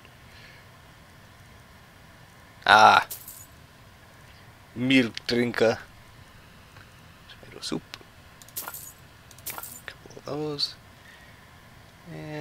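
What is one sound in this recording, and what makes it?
Coins clink briefly several times.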